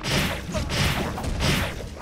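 A game explosion bursts with a boom.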